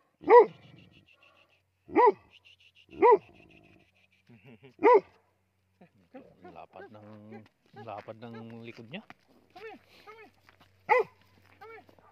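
A dog barks loudly nearby.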